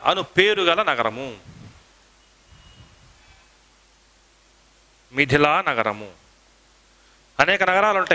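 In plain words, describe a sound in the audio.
A man speaks through a headset microphone in short, lively bursts.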